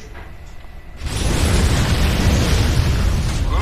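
Gunfire and explosions roar loudly in a battle.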